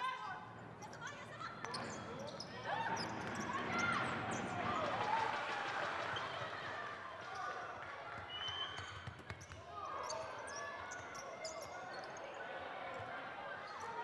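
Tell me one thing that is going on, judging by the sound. A basketball bounces on the court with dull thuds.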